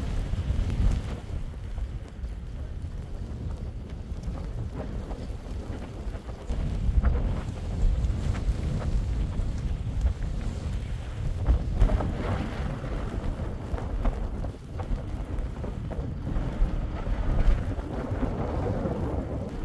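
Wind gusts and rumbles steadily outdoors.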